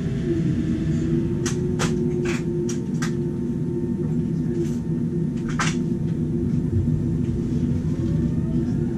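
A jet engine hums steadily with a low drone.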